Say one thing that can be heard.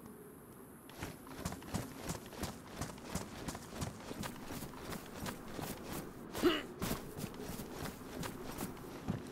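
Footsteps crunch over dry grass at a steady pace.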